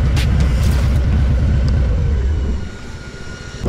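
A motorcycle engine roars loudly up close.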